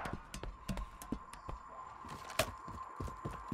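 Footsteps tap on a hard rooftop.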